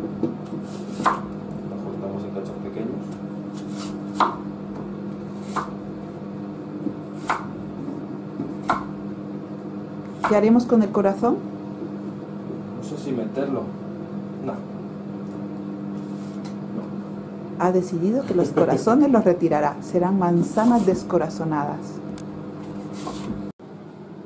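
A knife chops on a cutting board with steady knocks.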